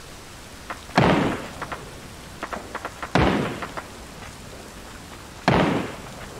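Gunshots fire loudly from a rifle, with a sharp crack and a short echo.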